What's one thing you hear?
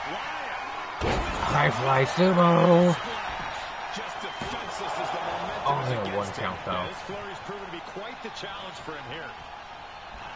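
A young man speaks excitedly into a close microphone.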